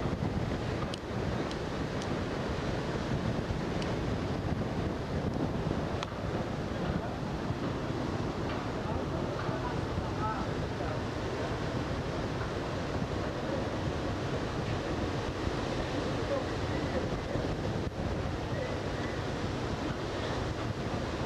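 Wind rushes steadily past the microphone outdoors.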